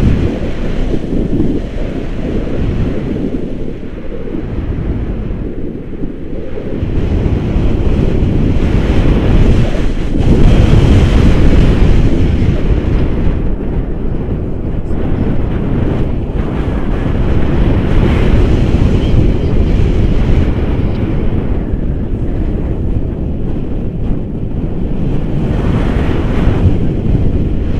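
Strong wind rushes and buffets loudly outdoors.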